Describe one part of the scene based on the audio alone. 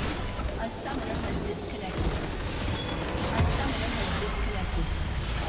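Video game fantasy battle spell effects whoosh and crash.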